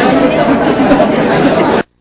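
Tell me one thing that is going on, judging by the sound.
A woman laughs and talks close by.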